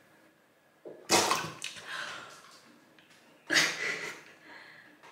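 A young girl gasps and shrieks loudly.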